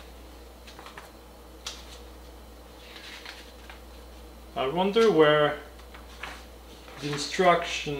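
Paper crinkles as a booklet is unfolded.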